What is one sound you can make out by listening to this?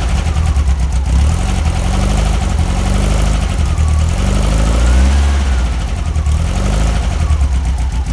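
A car engine revs up and down several times.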